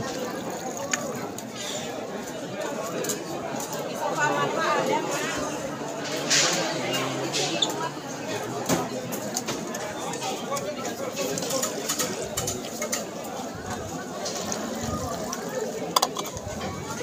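Plastic cups clatter against a dispenser.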